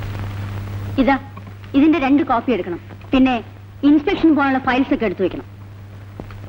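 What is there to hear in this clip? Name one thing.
An elderly woman speaks sternly.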